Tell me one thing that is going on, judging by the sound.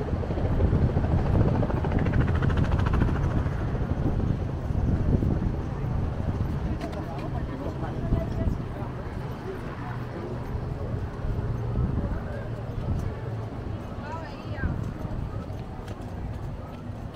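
Footsteps tap on a wooden boardwalk.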